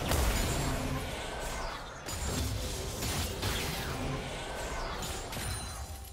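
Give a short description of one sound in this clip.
Fantasy battle sound effects clash and zap in quick bursts.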